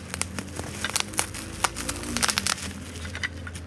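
Bubble wrap crinkles and crackles under hands.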